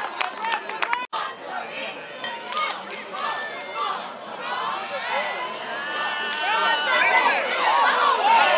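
A crowd of spectators cheers and shouts outdoors, growing louder.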